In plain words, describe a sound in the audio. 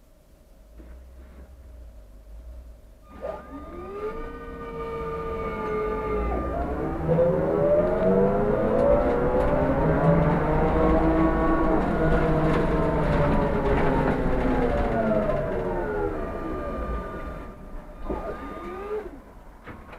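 A bus rumbles steadily along the road.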